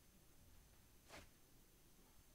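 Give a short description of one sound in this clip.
A soft whoosh sounds as playing cards are dealt out.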